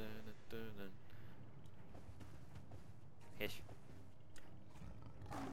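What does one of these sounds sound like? A horse's hooves thud steadily on soft ground.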